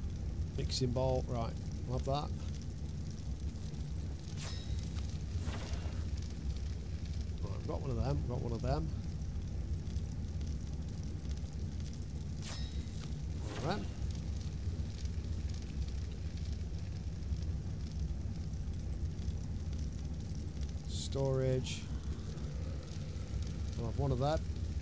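A man talks briefly into a close microphone.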